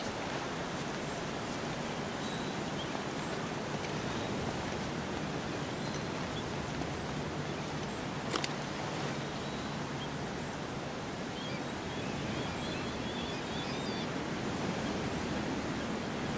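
Sea waves wash steadily against rocks below.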